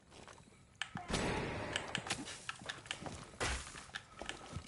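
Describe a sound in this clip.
Rapid gunshots rattle close by.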